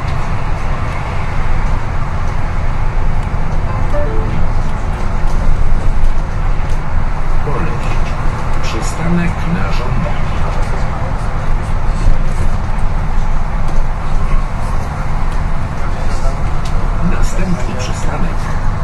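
Loose fittings inside the bus rattle and click now and then.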